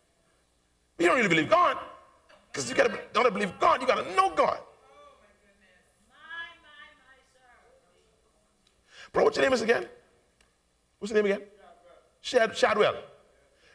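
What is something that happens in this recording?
A man preaches with animation through a microphone in a large room, in loud bursts with pauses.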